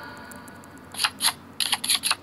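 Cards snap down quickly one after another.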